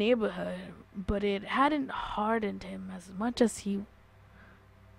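A teenage boy talks with animation close to a microphone.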